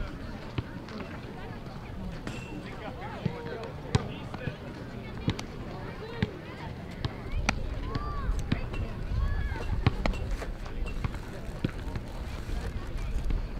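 A baseball pitch smacks into a catcher's mitt.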